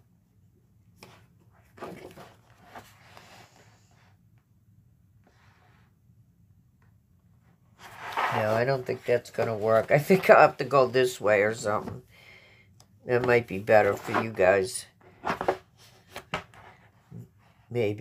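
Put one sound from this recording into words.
Paper pages rustle and flap as a booklet is leafed through.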